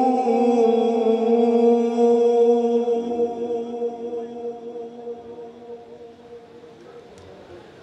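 A man chants a long, drawn-out note into a microphone, heard through loudspeakers, then fades away.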